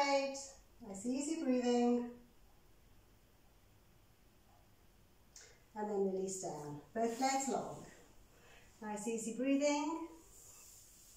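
A woman talks calmly, as if instructing, close by.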